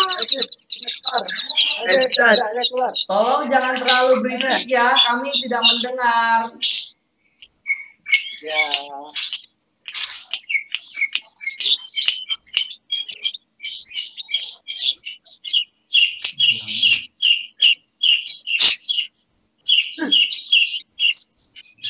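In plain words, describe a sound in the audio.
Caged songbirds chirp and trill rapidly, close by.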